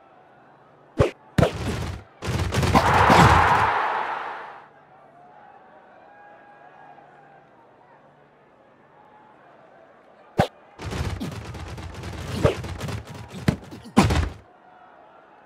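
A crowd roars and cheers in loud bursts.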